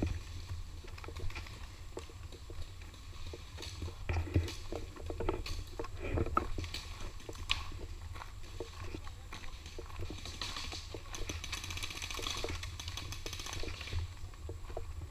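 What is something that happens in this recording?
A bicycle rattles and clatters over a bumpy trail.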